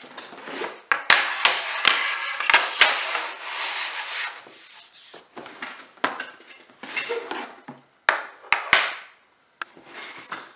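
A cardboard box is torn open.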